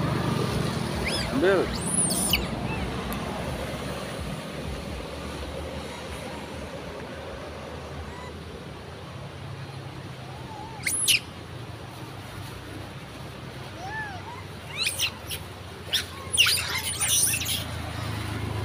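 Monkeys shriek and squeal in short, high bursts close by.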